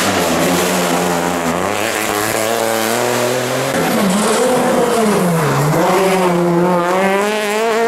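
Tyres skid and throw gravel across the road.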